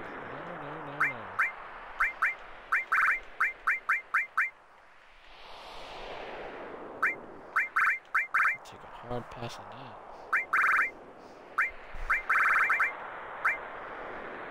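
Short high electronic menu blips tick in quick bursts.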